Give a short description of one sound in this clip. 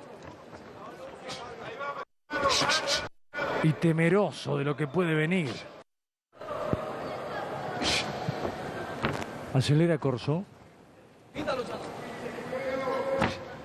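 Gloved punches thud against a boxer's body.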